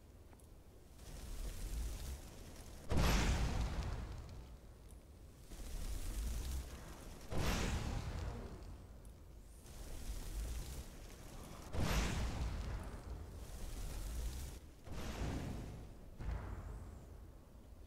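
Fire spells whoosh and roar in bursts.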